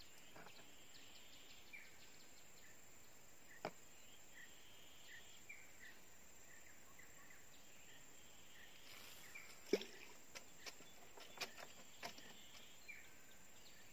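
A fishing reel clicks softly.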